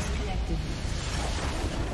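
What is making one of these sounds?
A large crystal shatters with a booming burst.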